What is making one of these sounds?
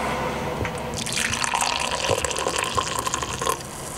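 Coffee pours and splashes into a cup.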